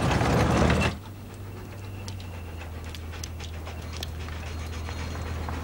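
A dog pants.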